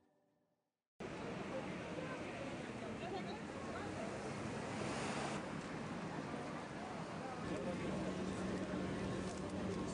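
A crowd murmurs on a busy street.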